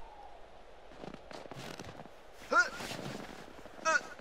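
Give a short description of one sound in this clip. Clothing rustles and shoes scrape against a metal box.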